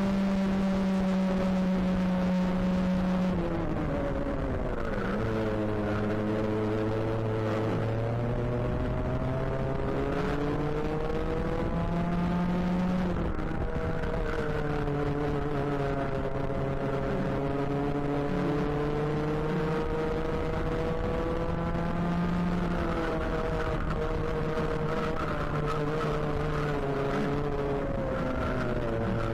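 A kart engine buzzes close by, its pitch rising and falling as the kart speeds up and slows through corners.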